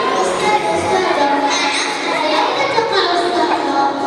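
A young girl speaks into a microphone over loudspeakers.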